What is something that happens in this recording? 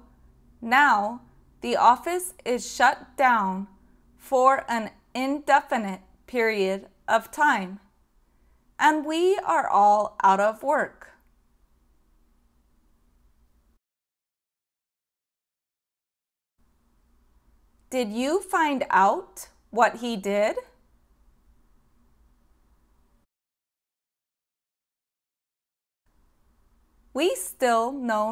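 A woman speaks calmly and clearly into a microphone, close by.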